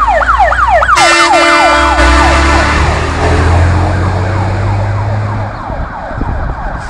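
A heavy truck engine roars close by and fades away.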